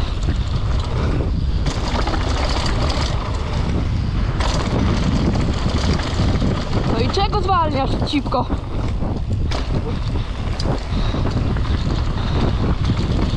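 Bike tyres rumble and crunch over a rough dirt trail.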